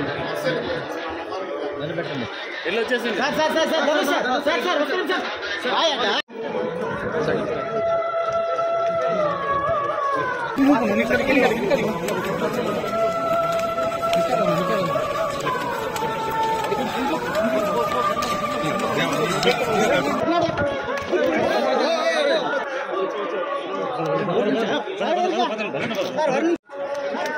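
A crowd of people chatters and murmurs close by.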